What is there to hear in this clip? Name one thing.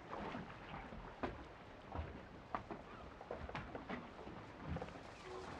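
Water laps gently against wooden posts.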